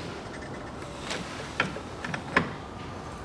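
Plastic parts click and knock under gloved hands.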